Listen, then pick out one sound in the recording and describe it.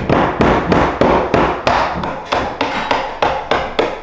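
A hammer taps on a metal door hinge pin.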